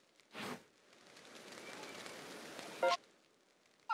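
A soft whoosh sweeps in as a map opens.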